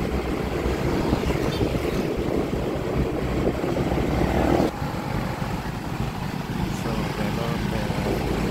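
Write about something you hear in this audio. Wind rushes loudly past a moving motorbike.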